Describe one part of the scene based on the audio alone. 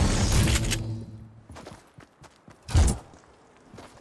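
A pickaxe smashes into wood.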